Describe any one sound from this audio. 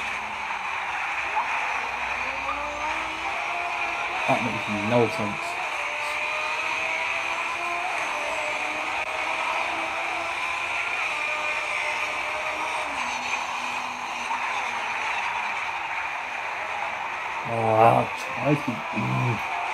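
A racing car engine roars and revs at high speed.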